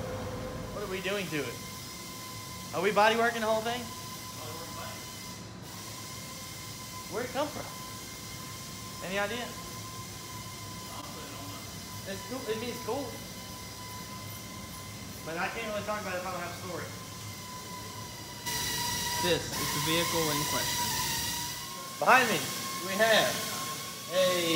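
A young man speaks calmly and close by.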